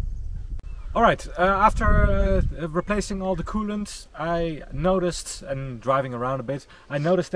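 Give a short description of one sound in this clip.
A middle-aged man talks with animation close by, outdoors.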